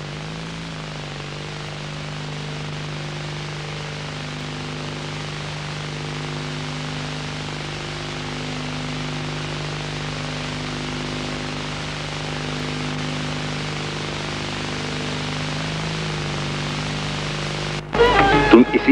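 A woman sings long, held notes.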